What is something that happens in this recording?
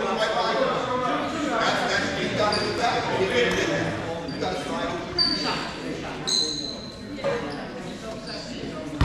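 Young boys talk and call out nearby.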